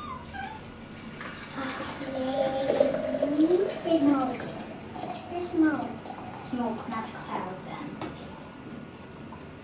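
Water pours from a kettle into a glass jar.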